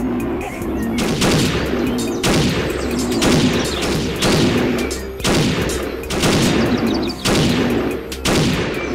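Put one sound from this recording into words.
A shotgun fires loud blasts, about once a second.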